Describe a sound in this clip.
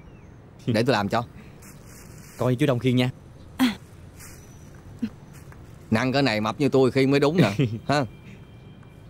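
A middle-aged man talks with animation nearby.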